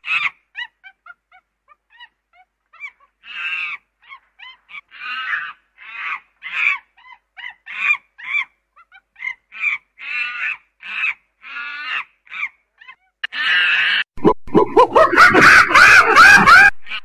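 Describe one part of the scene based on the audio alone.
A chimpanzee hoots in rising bursts that build into loud screams.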